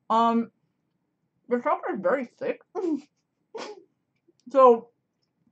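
A woman speaks expressively into a close microphone, in short bursts.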